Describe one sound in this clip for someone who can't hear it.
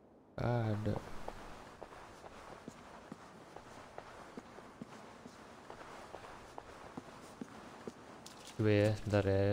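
A fire crackles softly.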